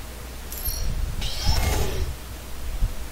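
A mechanism whirs briefly with a rising hiss.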